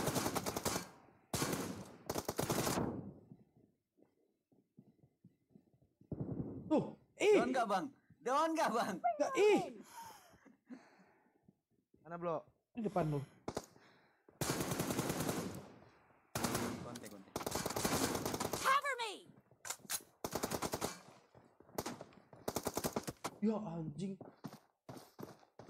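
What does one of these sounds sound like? Rapid gunfire rattles in short, loud bursts.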